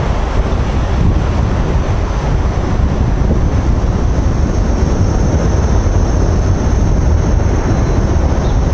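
Wind rumbles loudly across the microphone outdoors.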